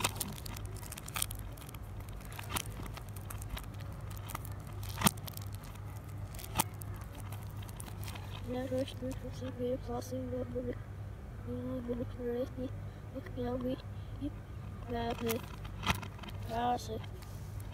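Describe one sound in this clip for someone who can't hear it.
A plastic case clicks and taps as it is handled.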